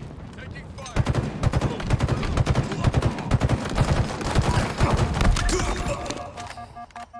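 Rapid gunfire bursts out in a game.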